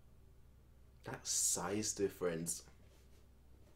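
A young man speaks calmly and close.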